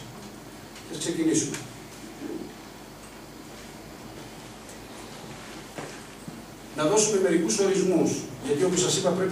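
A man speaks into a microphone, heard through loudspeakers in a hall.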